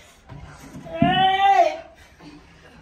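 A young woman cries out loudly.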